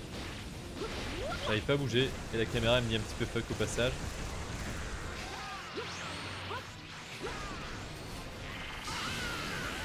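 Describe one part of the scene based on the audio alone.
Energy blasts whoosh and rumble in a video game.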